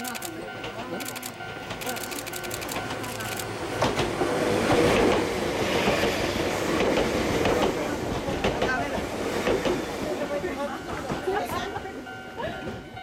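A tram rumbles past close by on rattling rails.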